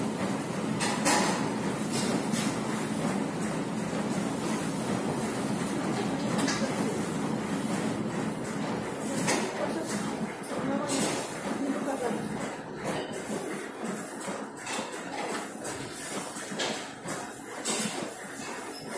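Metal weight plates clink now and then as a barbell is pressed.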